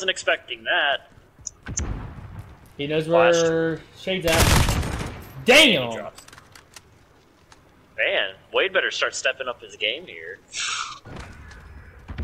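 A young man talks with animation into a close microphone, at times shouting.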